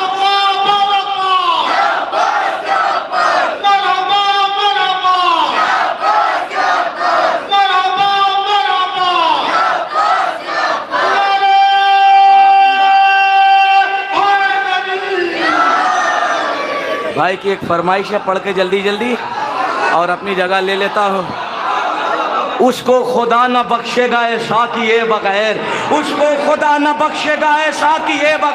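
A crowd cheers and calls out in praise.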